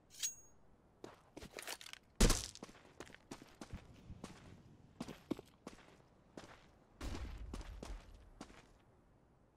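Footsteps tap quickly on hard ground.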